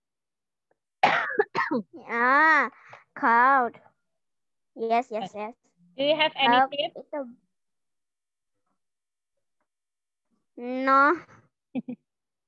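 A young woman speaks clearly and slowly over an online call.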